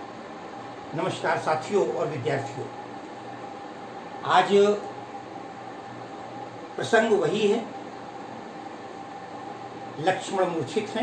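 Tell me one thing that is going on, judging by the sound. An elderly man speaks calmly in short phrases, close by.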